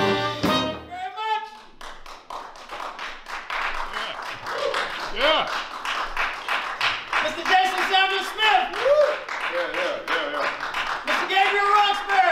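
A live jazz band plays in a reverberant room.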